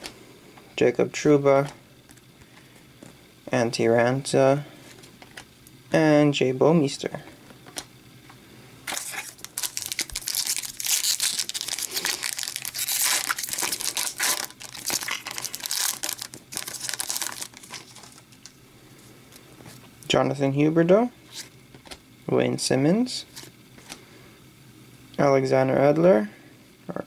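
Trading cards slide against each other as they are shuffled.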